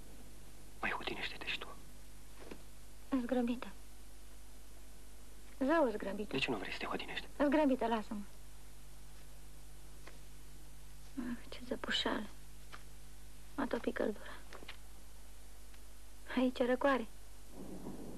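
A young woman speaks in short, emotional phrases close by.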